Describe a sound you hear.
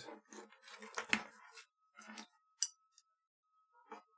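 Plastic parts click softly as a cable chain is snapped together.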